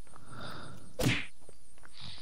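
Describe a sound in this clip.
A hammer strikes with a dull thud.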